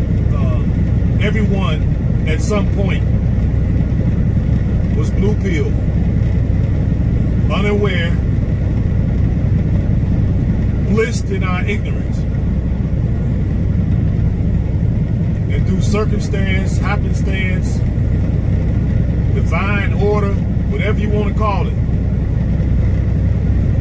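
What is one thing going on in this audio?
A car engine and tyres hum steadily on a highway.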